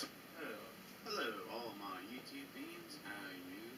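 A man talks calmly through a small loudspeaker.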